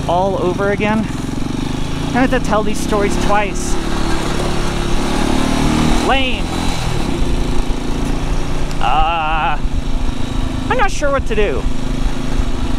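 A motorcycle engine rumbles.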